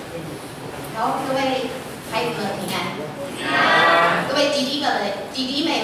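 A young woman speaks into a microphone over a loudspeaker in an echoing hall.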